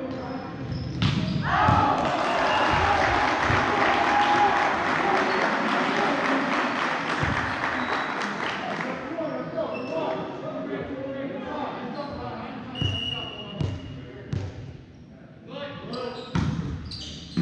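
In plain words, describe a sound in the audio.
A volleyball thumps off a player's hands.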